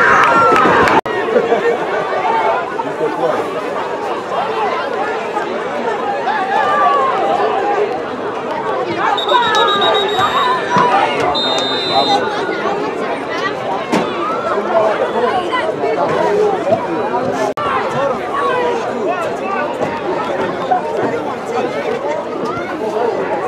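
A crowd of spectators talks and calls out in the distance outdoors.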